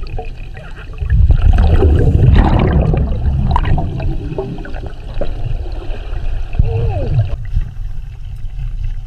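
Air bubbles gurgle and rumble underwater as a diver breathes out.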